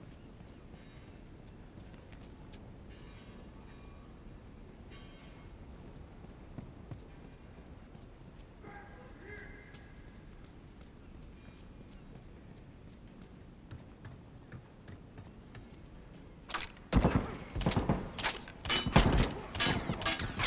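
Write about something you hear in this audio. Footsteps run.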